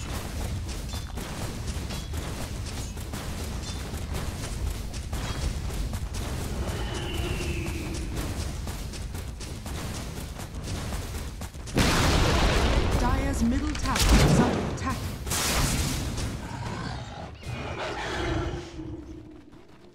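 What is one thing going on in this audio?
Game spells and attacks crackle and clash in a fight.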